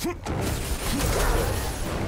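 Flames burst up with a roaring whoosh.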